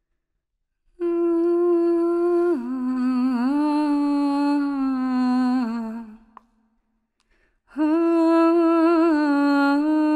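A young woman sings long, held notes close to a microphone.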